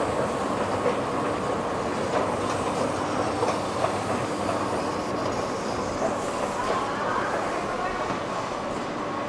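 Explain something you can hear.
An escalator hums and rattles as it runs, in an echoing underground hall.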